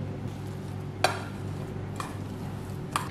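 A spoon clinks against a metal bowl.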